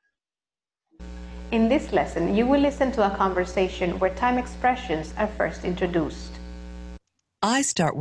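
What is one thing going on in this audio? A woman speaks calmly to the listener through a microphone.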